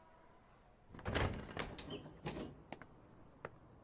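A door clicks and swings open.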